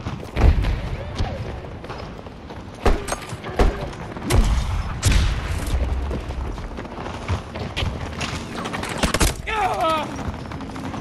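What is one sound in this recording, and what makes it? Gunfire cracks in rapid bursts nearby.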